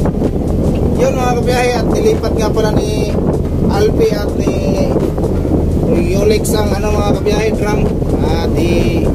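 Men talk loudly outdoors.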